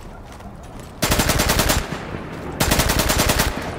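A submachine gun fires rapid bursts up close.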